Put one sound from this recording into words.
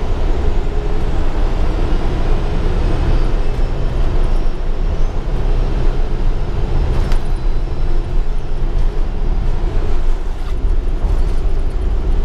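A bus interior rattles and clicks over bumps.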